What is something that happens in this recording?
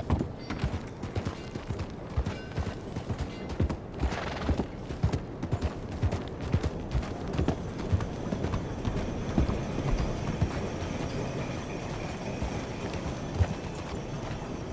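A horse's hooves clop steadily on the ground.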